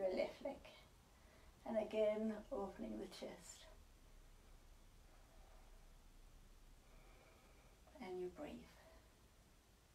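A woman speaks calmly and softly, close by, in short phrases.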